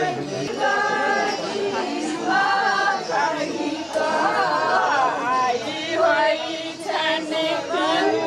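A group of women sing together nearby.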